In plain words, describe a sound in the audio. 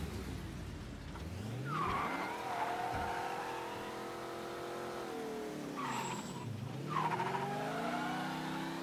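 A car engine revs up and down as it drives.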